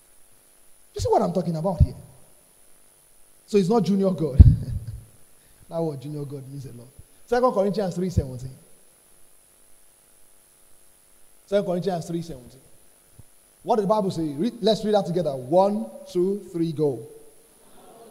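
A young man speaks with animation into a microphone, in bursts with pauses.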